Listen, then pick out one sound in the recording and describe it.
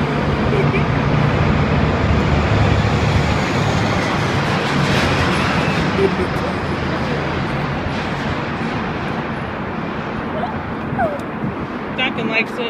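A steady low roar echoes through a long tunnel.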